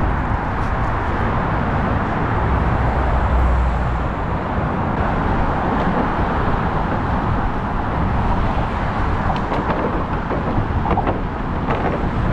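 Wind blows hard and rumbles outdoors.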